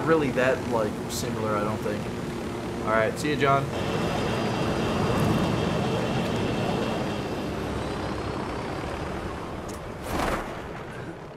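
A helicopter's rotor whirs loudly.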